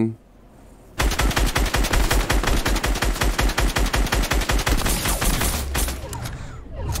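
A rifle fires in fast, rapid bursts.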